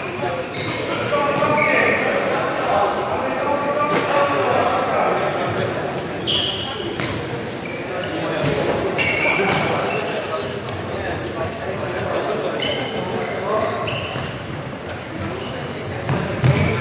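Men call out to each other across an echoing hall.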